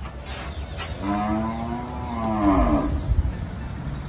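A bull lets out a long, low moo close by.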